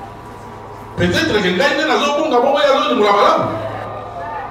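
A crowd of men shouts together in a large echoing hall.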